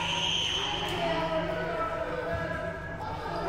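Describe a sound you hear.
A volleyball is struck with a dull slap.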